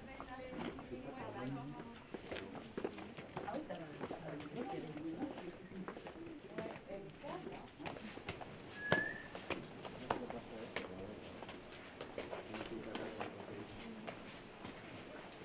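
Adults chat nearby in the open air.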